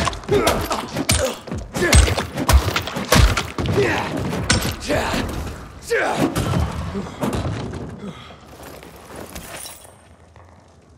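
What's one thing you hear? Heavy blows thud and squelch against a body in quick succession.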